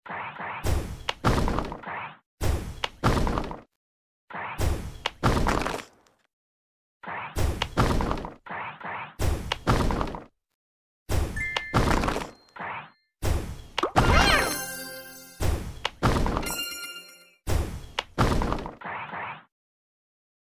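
A game bubble shoots off with a whoosh.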